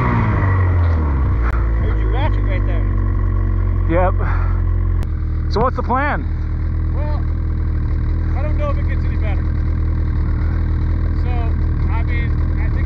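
A snowmobile engine idles with a steady low hum.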